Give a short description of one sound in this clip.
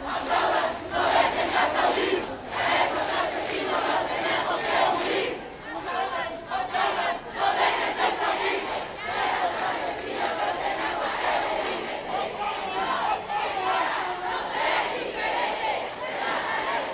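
A large crowd of marching people chants and shouts outdoors.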